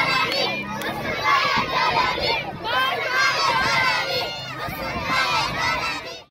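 A crowd of children chants and cheers loudly outdoors.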